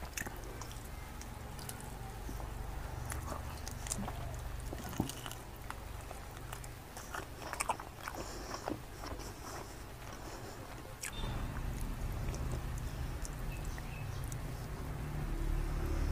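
A man chews food noisily, close to the microphone.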